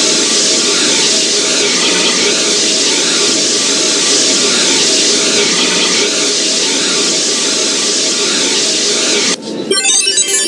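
Water sprays hard from a fire hose with a steady hiss.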